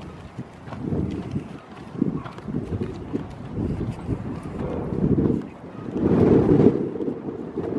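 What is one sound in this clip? Goats' hooves step on soft earth.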